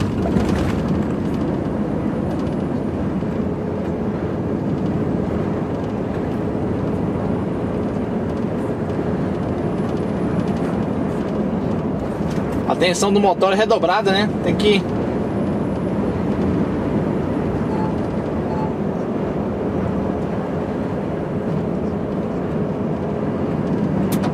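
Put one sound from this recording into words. A lorry engine drones steadily from inside the cab.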